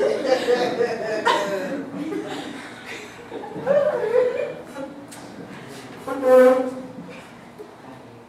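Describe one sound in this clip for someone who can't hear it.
A young woman speaks loudly with animation on stage.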